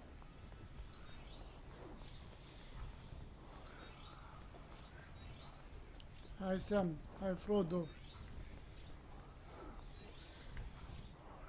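Small coins chime in quick rising runs.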